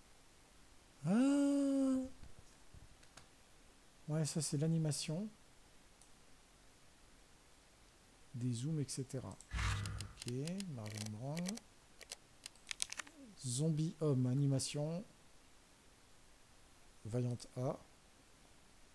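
A man talks casually and close into a microphone, in short bursts with pauses.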